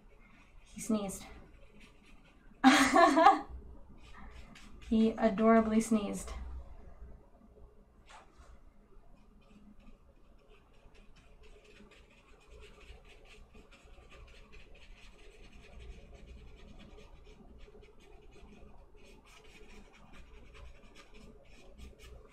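A paintbrush brushes softly on paper.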